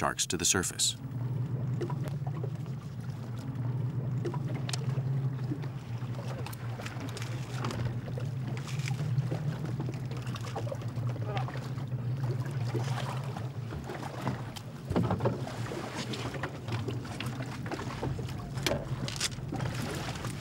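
A boat engine hums steadily close by.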